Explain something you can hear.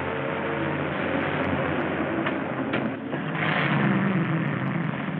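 A vintage car engine runs.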